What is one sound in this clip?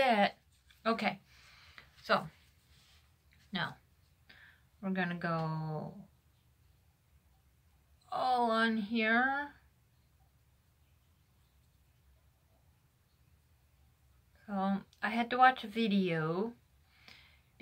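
A woman talks calmly and close by, in short bursts with pauses.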